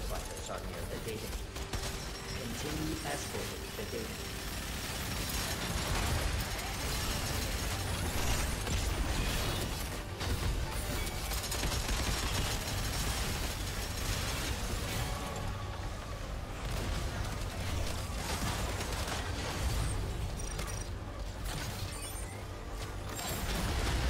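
Gunfire and explosions from a video game crackle and boom without pause.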